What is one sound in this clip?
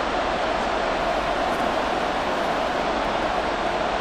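A large crowd murmurs and cheers steadily in a big stadium.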